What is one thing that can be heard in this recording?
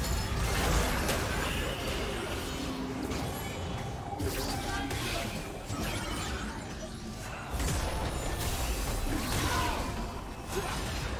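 Game characters clash with sharp impact sounds.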